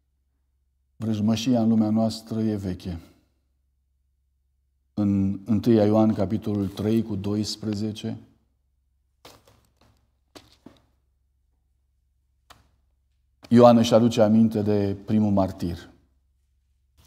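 A man speaks calmly into a microphone, in bursts with long pauses.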